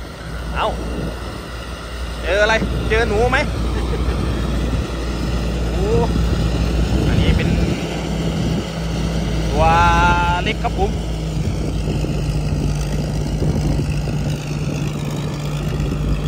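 A combine harvester engine drones steadily close by.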